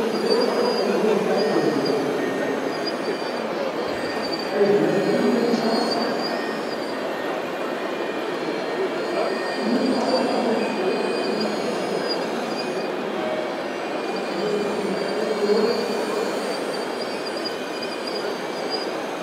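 Small electric motors whine in short bursts as model excavators move.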